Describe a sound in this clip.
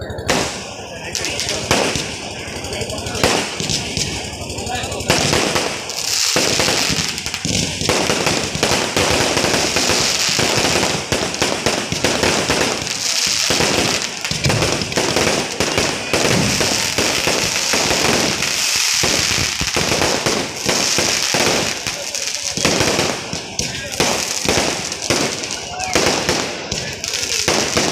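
Fireworks explode close by in rapid, crackling bursts.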